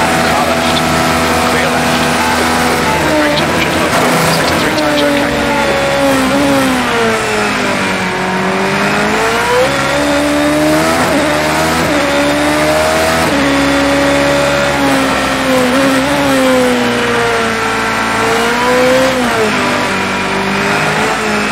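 A racing car engine whines loudly, rising and falling in pitch as the car shifts gears and brakes.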